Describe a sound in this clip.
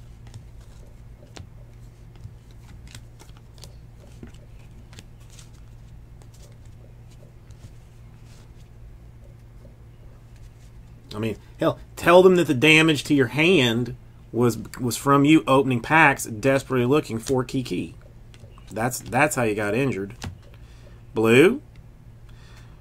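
Trading cards rustle and slide softly against each other in hands.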